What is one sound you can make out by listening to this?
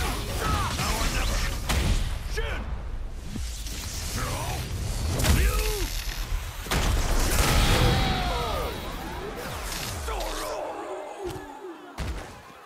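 Heavy punches and kicks land with loud, sharp thuds.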